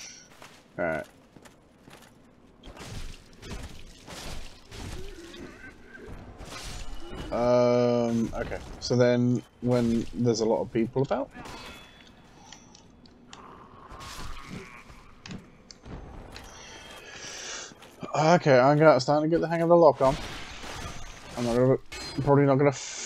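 Armoured footsteps thud on stone.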